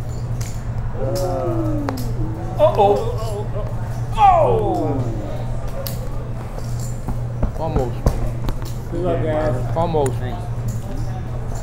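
Men talk and exclaim around a table.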